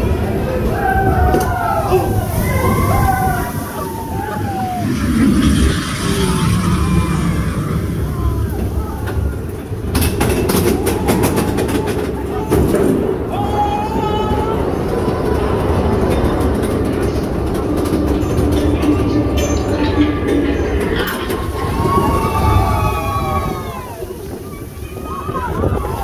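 Riders scream and cheer close by.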